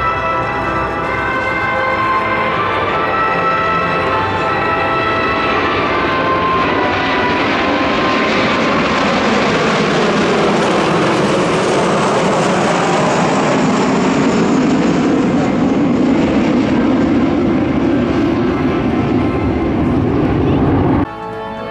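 A formation of jet planes roars overhead, growing louder as it approaches.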